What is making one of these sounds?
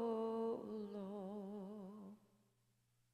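A woman sings a long held note with vibrato through a microphone.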